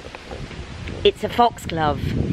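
An elderly woman speaks with animation close to the microphone.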